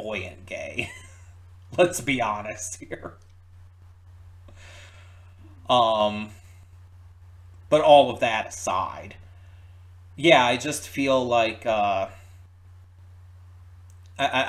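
A man talks calmly and cheerfully close to a microphone, in short bursts.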